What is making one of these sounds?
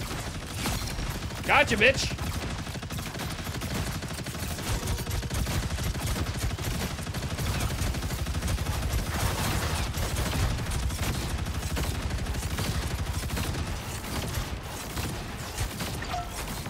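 Game weapons fire and explode rapidly.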